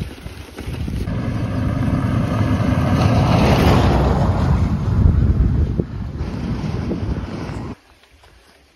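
A truck drives past on a gravel road with a loud, rising and fading roar.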